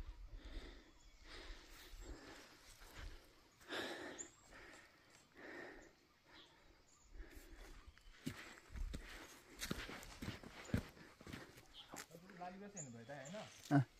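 Footsteps crunch and scrape on a rocky dirt path.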